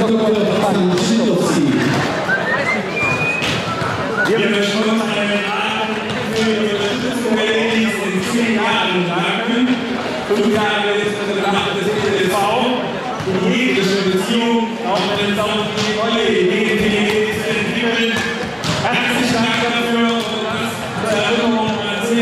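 An older man speaks animatedly into a microphone, heard over loudspeakers in a large echoing hall.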